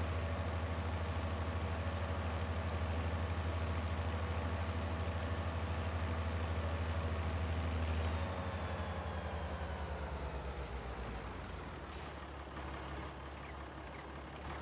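A tractor engine rumbles steadily, then drops to a lower idle.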